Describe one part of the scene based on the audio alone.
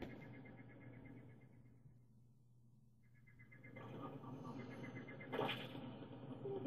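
Electronic game music plays from a television loudspeaker.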